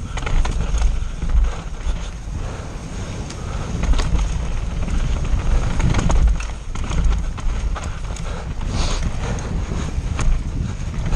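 A bicycle rattles and clatters over bumps.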